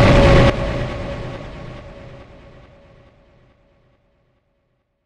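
An electronic music track ends on a loud chord that slowly fades to silence.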